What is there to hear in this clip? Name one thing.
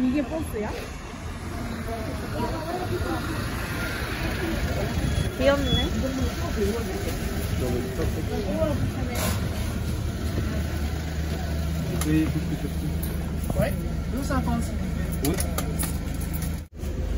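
A bus engine hums close by.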